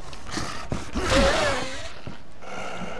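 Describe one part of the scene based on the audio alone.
A creature snarls close by.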